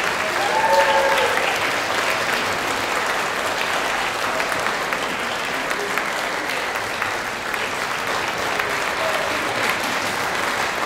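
An orchestra of strings and winds plays in a large hall.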